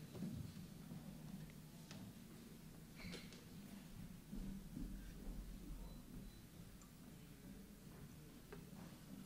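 An acoustic guitar is strummed softly in a large echoing hall.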